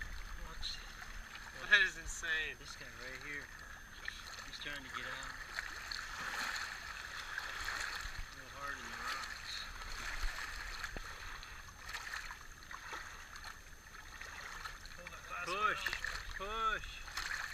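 Small waves lap gently against a rocky shore.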